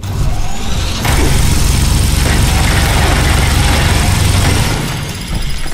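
A heavy energy weapon fires in a loud, steady roar.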